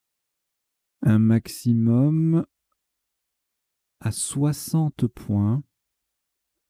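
A man speaks calmly into a microphone in two short bursts.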